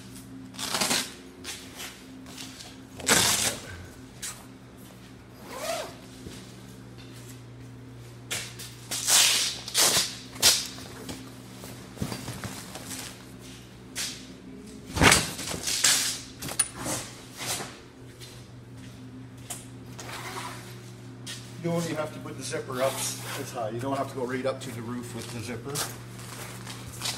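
A vinyl cover rustles and crinkles as it is handled.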